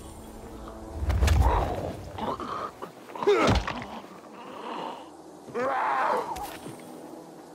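A creature snarls and shrieks close by.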